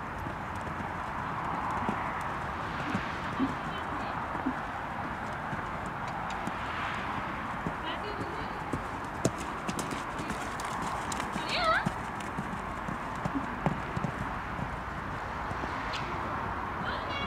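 A pony canters with muffled hoofbeats on sand.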